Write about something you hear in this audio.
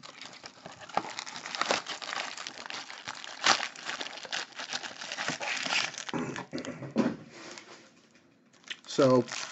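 Foil packs rustle and clatter as hands pull them out and stack them.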